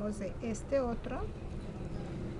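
A woman speaks briefly close by.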